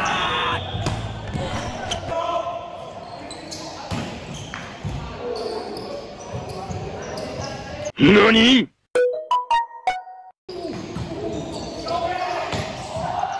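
Young men and women call out and chatter in an echoing gym.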